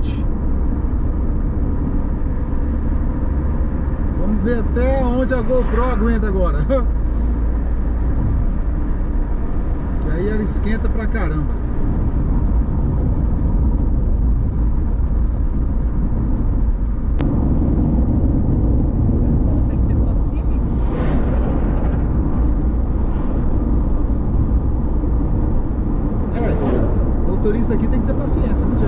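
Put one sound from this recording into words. Tyres hum steadily on the road from inside a moving car.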